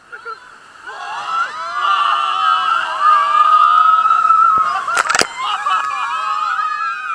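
A young man shouts and screams loudly.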